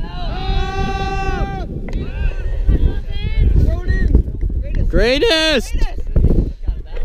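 Young men shout to each other across open ground.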